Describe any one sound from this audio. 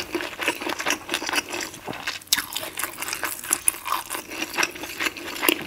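A spoon scrapes and stirs sauce in a glass bowl.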